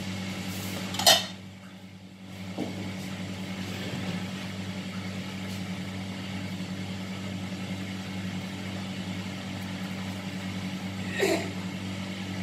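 Metal utensils clink against a pan.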